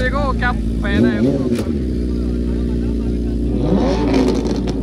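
A motorcycle engine revs up briefly.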